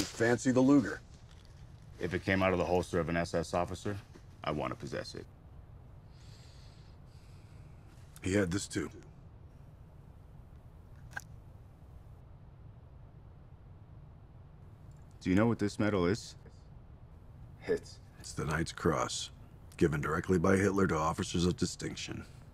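A man speaks calmly and close by.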